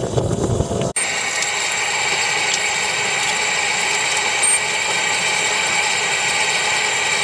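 Steam hisses steadily from a small steam locomotive.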